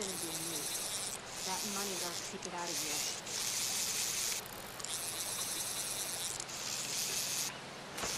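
A fish splashes and thrashes in water.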